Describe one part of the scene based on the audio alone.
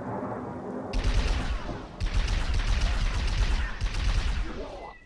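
A heavy energy cannon fires in rapid, roaring bursts.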